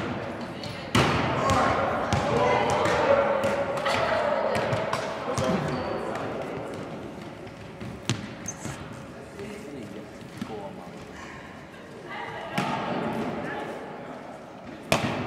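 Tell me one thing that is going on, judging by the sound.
Adult men and women talk and call out at a distance in an echoing hall.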